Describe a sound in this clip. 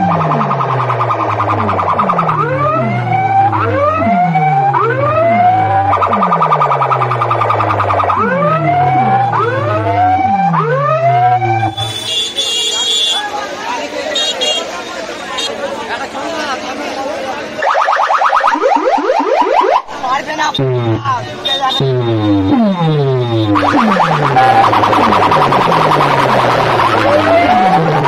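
Loud sirens wail over and over through horn loudspeakers.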